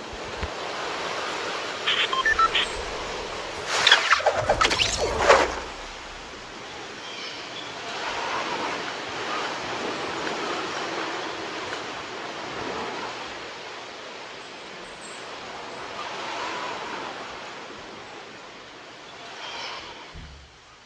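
Wind rushes steadily past during a long fall through the air.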